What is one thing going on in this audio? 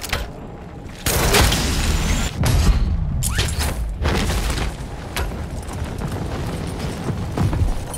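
Wind rushes past during a fall through the air.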